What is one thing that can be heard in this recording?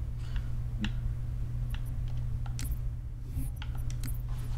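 Short menu clicks tick.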